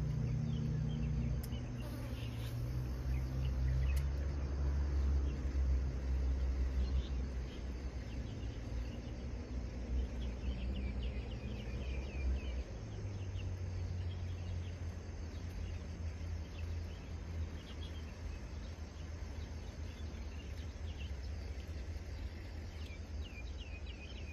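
Wind blows steadily outdoors, rustling tall reeds.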